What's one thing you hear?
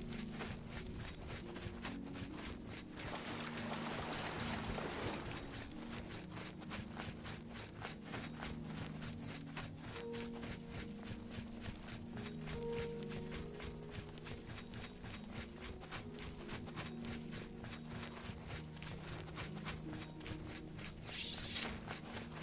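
Footsteps crunch steadily over stone.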